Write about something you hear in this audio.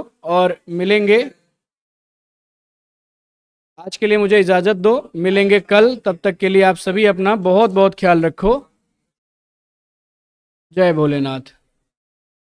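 A man speaks with animation, close to a microphone, in short bursts with pauses.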